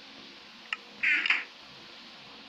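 A wooden chest lid creaks shut.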